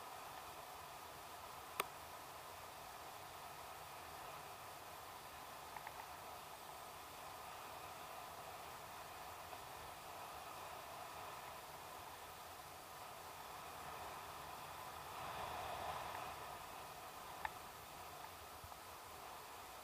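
Wind rushes steadily past the microphone outdoors.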